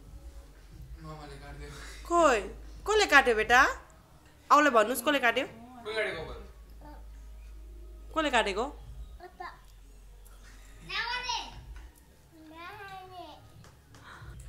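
A toddler babbles and chatters in a high, lively voice close by.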